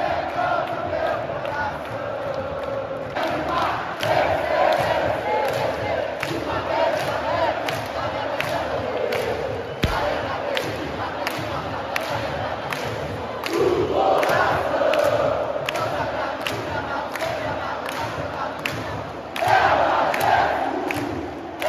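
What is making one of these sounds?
Fans clap their hands in a steady rhythm.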